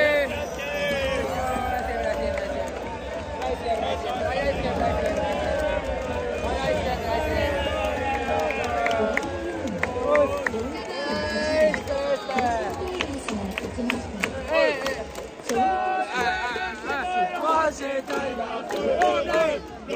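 A young man sings loudly up close.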